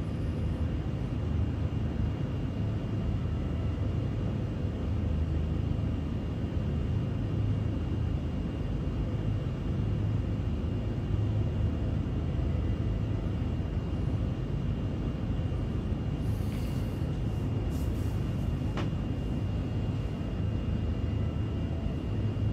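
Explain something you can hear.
A spaceship engine hums low and steadily.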